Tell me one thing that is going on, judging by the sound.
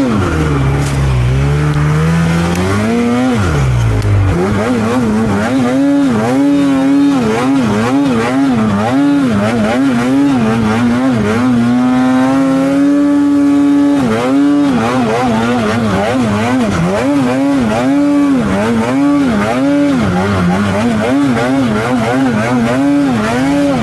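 A snowmobile engine roars and revs up and down rapidly.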